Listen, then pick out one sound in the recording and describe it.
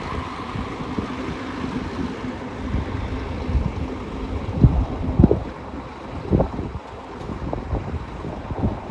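A bus engine rumbles as the bus slowly turns and pulls away.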